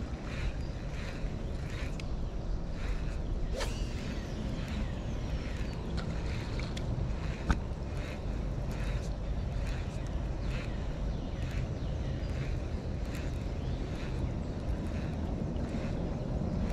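A fishing reel whirs and clicks as it is cranked.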